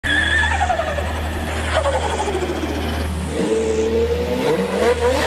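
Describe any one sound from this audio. A car engine roars as the car speeds down a road.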